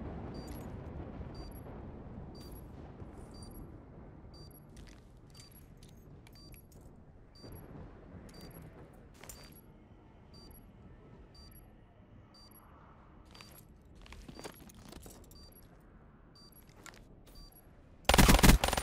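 Footsteps tread steadily on snow and hard floors.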